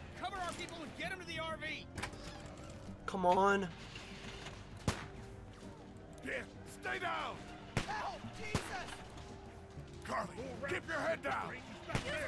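A man's voice speaks urgently from a game.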